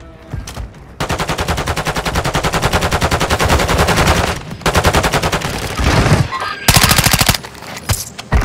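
Rapid automatic gunfire rattles loudly in bursts.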